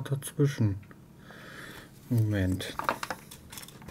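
A small plastic circuit board is set down with a light clatter.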